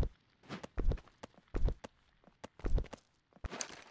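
Wooden planks knock into place.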